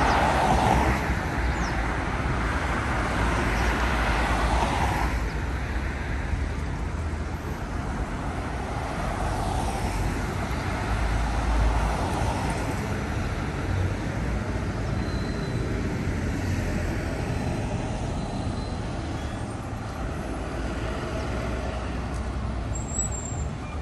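Cars pass by with tyres swishing on the road.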